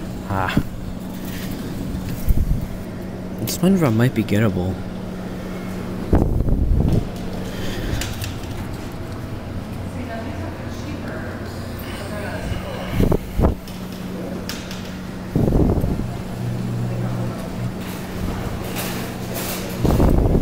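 A claw machine hums steadily.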